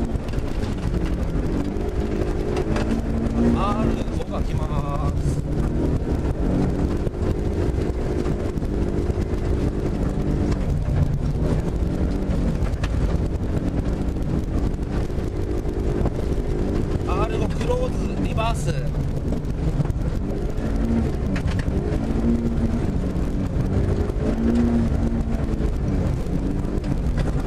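Tyres crunch and rumble over packed snow.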